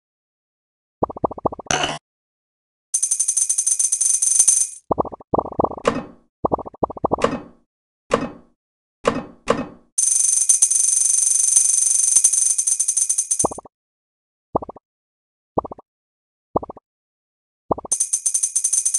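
Quick popping clicks sound as balls are stacked and knocked off.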